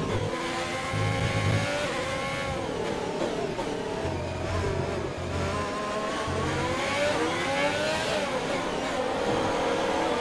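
A racing car engine roars, its pitch dropping in steps as it shifts down while braking.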